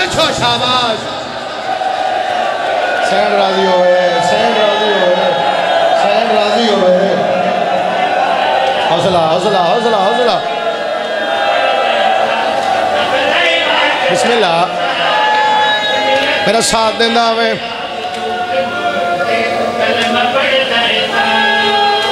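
A crowd of men chant along together.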